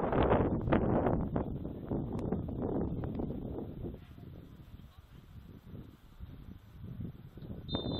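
Wind buffets the microphone outdoors, in gusts that ease off.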